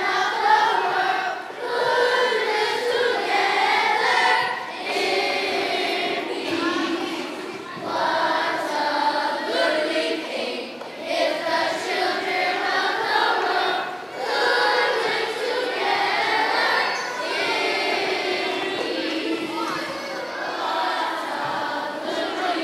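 A choir of children sings in a large echoing hall.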